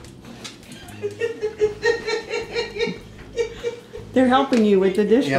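A dog whimpers and whines excitedly.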